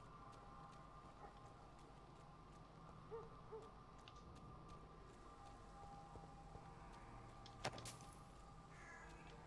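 Footsteps tread slowly on a hard surface.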